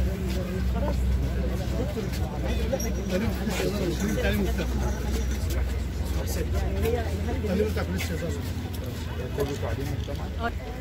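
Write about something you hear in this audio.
A crowd of men murmur and talk nearby.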